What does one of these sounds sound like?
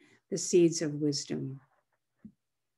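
An elderly woman speaks calmly and close to a microphone.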